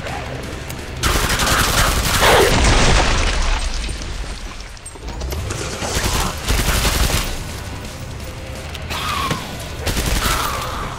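Guns fire in loud, rapid bursts.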